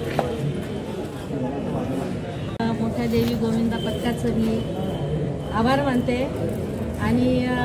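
Several women talk and call out close by.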